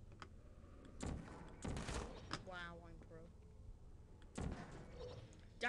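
A toy-like gun fires with a sharp electric zap.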